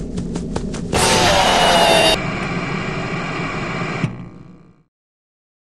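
Loud electronic static hisses, then cuts off.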